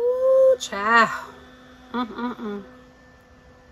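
A woman speaks expressively, close by.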